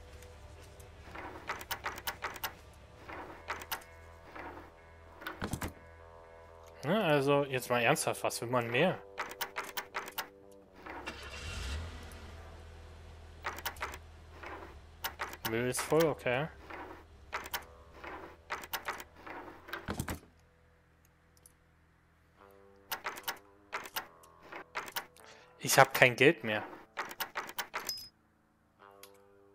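Metal lock picks click and scrape inside a lock.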